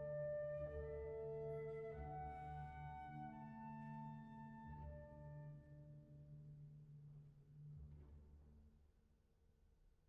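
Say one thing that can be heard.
An orchestra plays in a large hall, loudly at first and then fading away.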